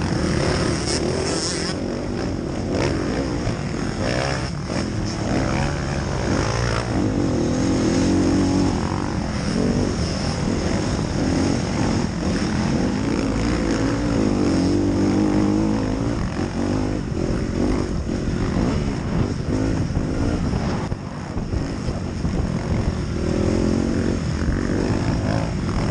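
Other dirt bike engines whine nearby.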